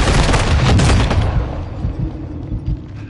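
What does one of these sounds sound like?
A loud explosion booms and rumbles away at the start.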